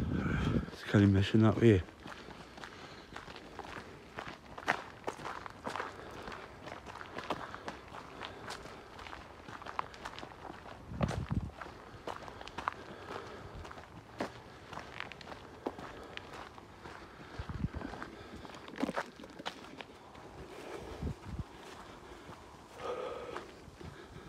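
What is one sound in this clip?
Footsteps crunch on a dirt and gravel path.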